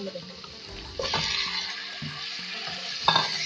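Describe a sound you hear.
Chunks of meat drop into hot oil with a loud sizzle.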